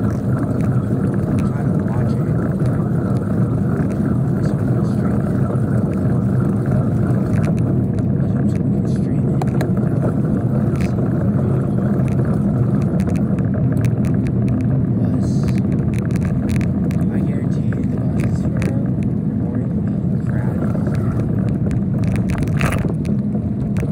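Wind rumbles loudly against the microphone.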